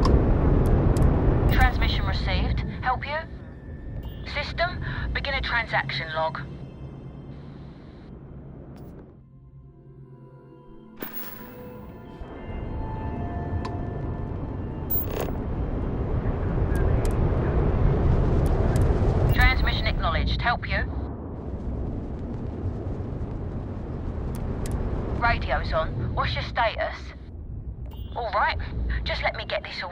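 A spaceship engine rumbles deeply and steadily.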